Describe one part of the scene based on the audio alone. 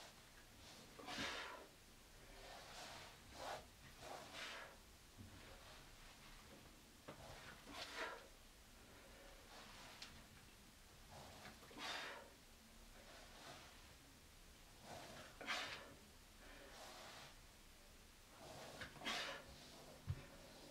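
A man breathes out hard with each push-up.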